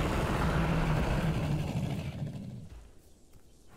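A large beast growls deeply and loudly, then falls quiet.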